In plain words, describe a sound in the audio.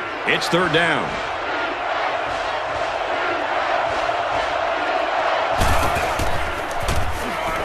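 A large stadium crowd roars.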